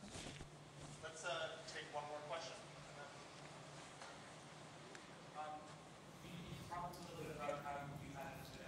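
A man speaks through a microphone in a large echoing hall, with pauses.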